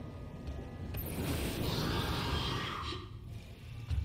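A flamethrower roars in a loud, hissing burst.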